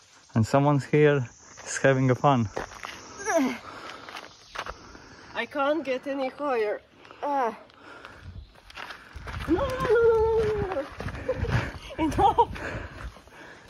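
A young girl shouts and squeals excitedly close by.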